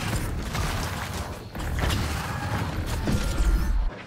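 A creature in a video game lets out a magical roar with a rushing whoosh.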